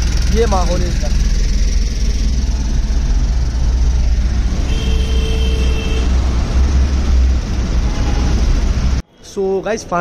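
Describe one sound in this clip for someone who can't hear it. Traffic rumbles steadily from inside a moving car.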